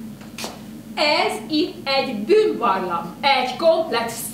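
A woman speaks loudly and expressively.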